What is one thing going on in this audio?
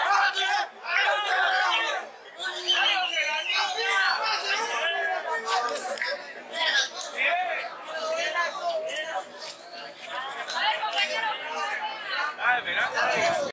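Young men talk loudly over one another close by.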